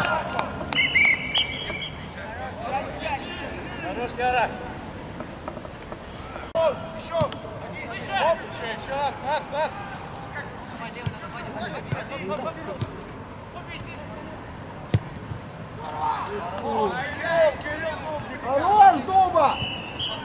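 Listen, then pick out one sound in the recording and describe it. Young men shout and call to each other outdoors.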